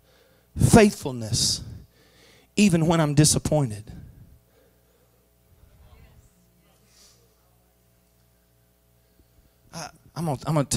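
A middle-aged man speaks with animation into a microphone in a large room, heard through loudspeakers.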